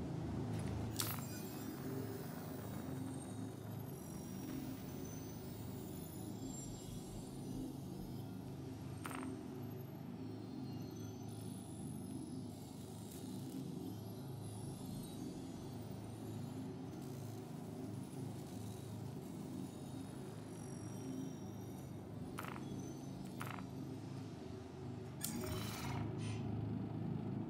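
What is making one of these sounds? Short electronic beeps sound from a control panel now and then.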